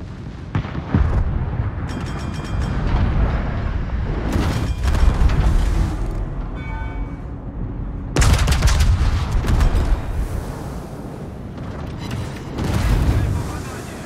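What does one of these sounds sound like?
Naval guns fire with deep, booming blasts.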